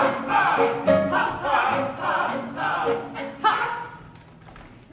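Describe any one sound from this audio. A band plays music on stage in a large hall.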